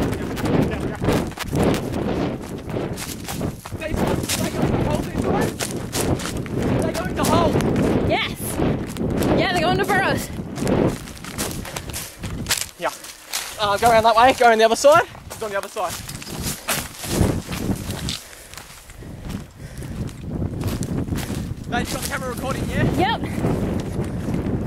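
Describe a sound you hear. Footsteps crunch quickly over dry brush and debris.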